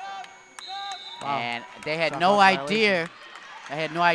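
A crowd of spectators cheers in an echoing gym.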